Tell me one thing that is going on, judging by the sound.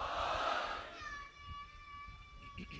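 A man chants in a long, drawn-out voice through a microphone.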